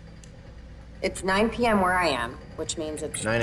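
A woman speaks softly over an online call.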